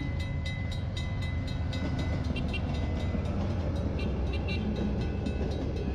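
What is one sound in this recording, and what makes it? A diesel train rumbles past at close range.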